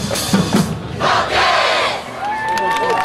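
A large crowd cheers loudly for a moment.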